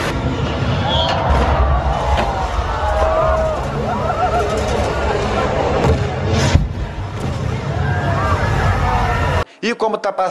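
A crowd of people cheers and shouts nearby.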